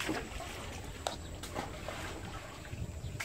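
A knife chops vegetables on a board with sharp taps.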